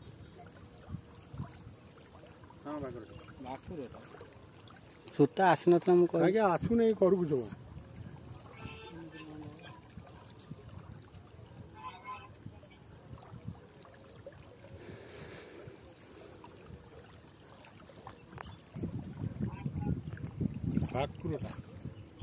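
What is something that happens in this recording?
Small waves lap gently against the shore.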